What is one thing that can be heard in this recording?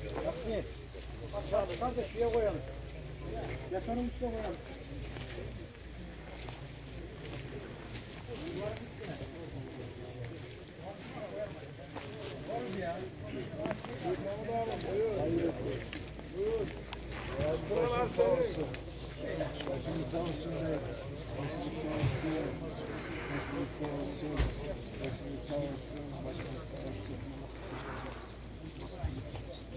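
A crowd of older men murmurs and talks quietly outdoors nearby.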